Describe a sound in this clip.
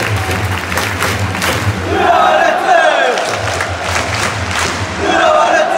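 Fans clap in rhythm.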